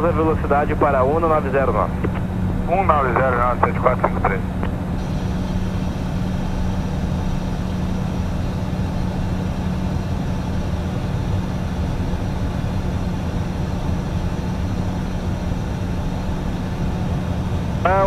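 A steady low roar of jet engines and airflow fills an aircraft cockpit.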